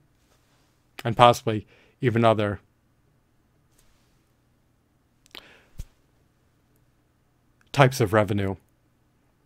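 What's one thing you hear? A young man speaks calmly and close up, in short bursts with pauses.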